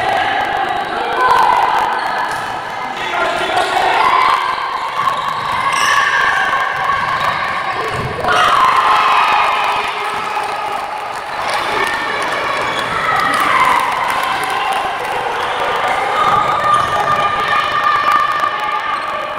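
A crowd of spectators chants and cheers in a large echoing hall.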